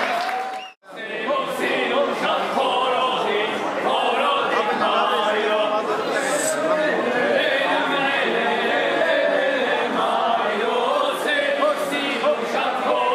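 A group of young men and women sing together loudly.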